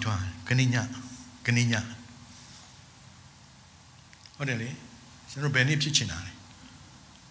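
A man speaks into a microphone in short phrases with pauses.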